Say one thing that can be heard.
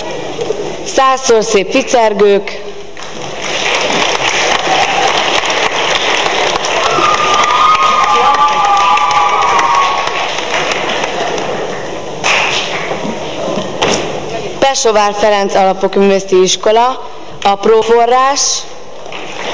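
A young woman speaks through a microphone and loudspeakers in a large hall.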